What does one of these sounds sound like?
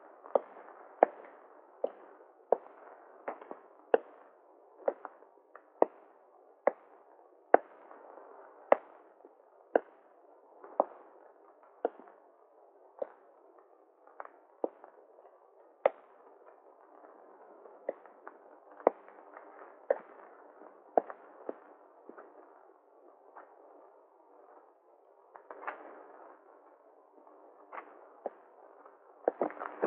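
Heavy footsteps thud slowly and steadily on a hard floor.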